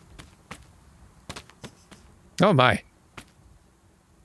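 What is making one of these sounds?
Light cartoon footsteps patter on a hard surface.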